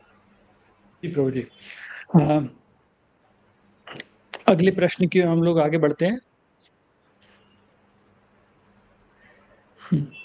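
An adult man speaks calmly over an online call.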